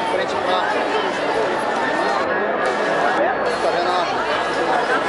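A large crowd of people talks and cheers outdoors.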